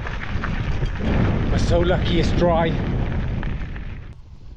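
An elderly man speaks close to the microphone over wind noise.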